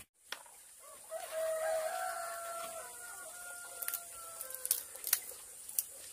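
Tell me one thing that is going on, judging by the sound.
Dry papery skins crackle as hands peel garlic cloves.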